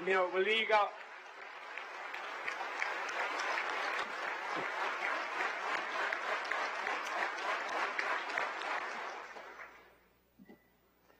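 A large crowd applauds steadily in a large hall.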